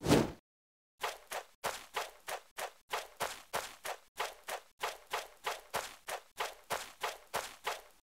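Quick footsteps patter on the ground in a steady running rhythm.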